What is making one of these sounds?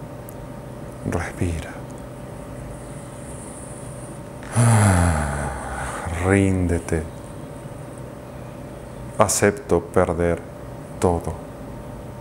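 A man speaks calmly and slowly in short phrases, close to a microphone.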